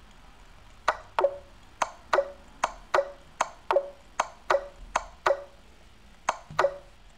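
Chess pieces click sharply in quick pairs as moves are made.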